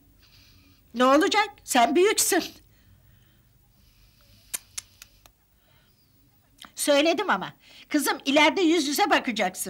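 An elderly woman speaks into a phone with animation, close by.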